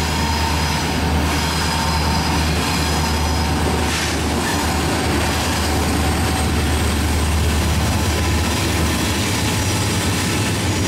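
Diesel locomotive engines rumble loudly as a freight train passes close by.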